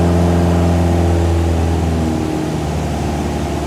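A propeller plane's engine drops in pitch as the power is eased back.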